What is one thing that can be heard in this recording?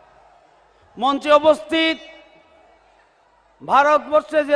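An elderly man speaks loudly into a microphone, heard over loudspeakers.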